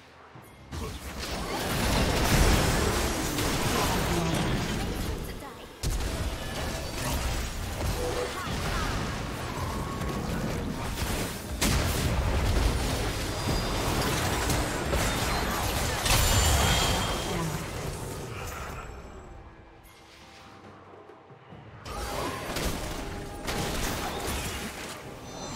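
Game spell effects crash and whoosh in a fast battle.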